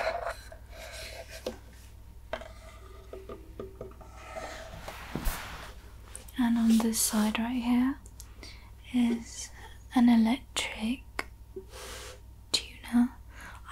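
Fingers tap and scratch on a wooden ukulele body close to a microphone.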